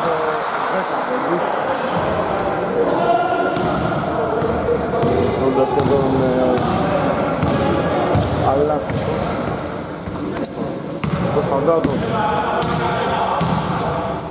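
Men call out to each other loudly across an echoing hall.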